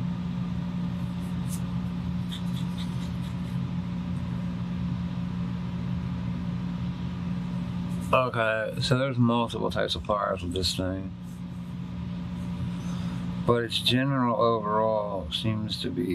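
A pen scratches lightly across paper.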